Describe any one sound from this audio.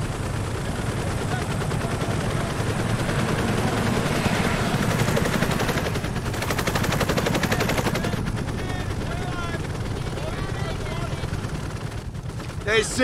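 Helicopter rotors thump loudly nearby.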